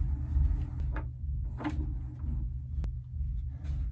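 A case lid clicks shut.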